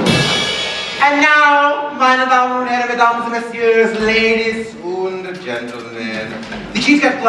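A woman sings loudly in a large hall.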